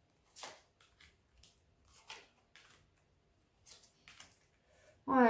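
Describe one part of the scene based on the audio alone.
Playing cards softly slide and tap against each other.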